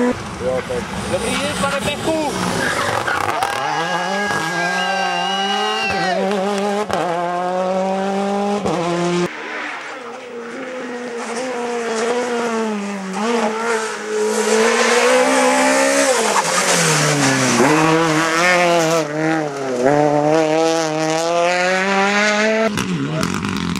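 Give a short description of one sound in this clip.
A rally car engine revs hard, rising and dropping sharply with quick gear changes.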